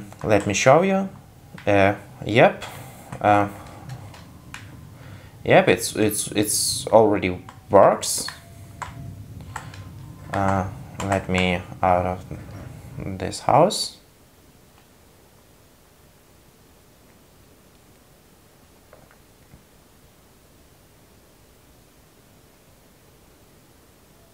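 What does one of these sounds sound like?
Buttons on a game controller click softly.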